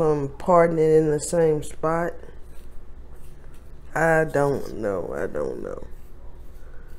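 A woman talks close to the microphone with animation.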